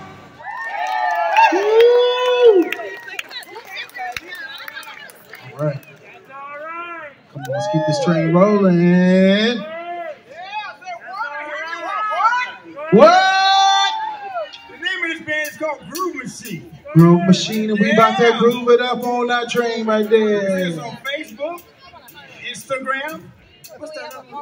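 A man sings loudly through loudspeakers.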